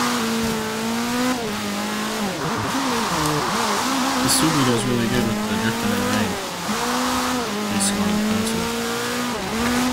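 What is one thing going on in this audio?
A racing car engine roars steadily and changes pitch as it shifts gears.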